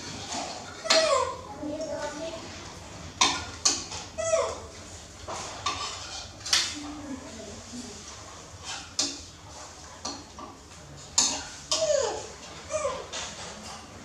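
A baby monkey squeaks and whimpers.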